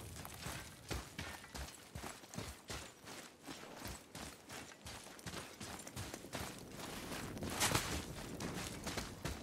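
Footsteps crunch through dry grass and snow.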